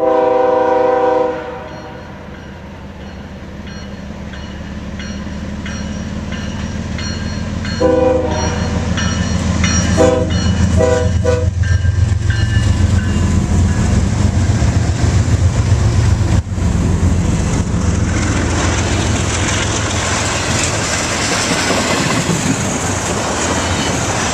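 A freight train rumbles closer and rolls past with a heavy roar.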